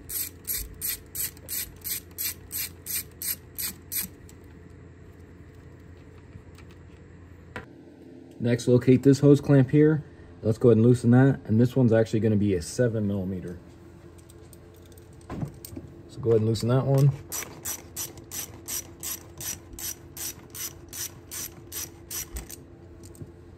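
A ratchet wrench clicks rapidly in short, even bursts.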